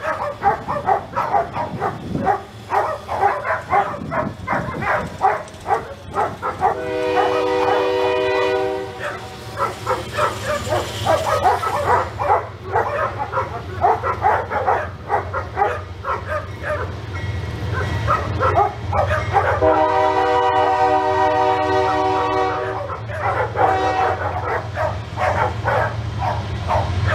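A woman talks to a dog with animation, close by.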